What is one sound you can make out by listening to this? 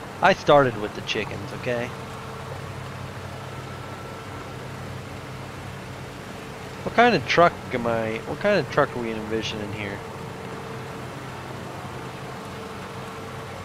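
A riding lawn mower engine hums steadily.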